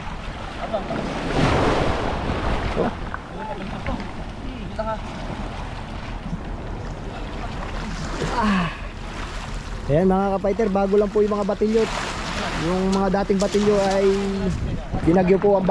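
Small waves wash and lap against a pebble shore.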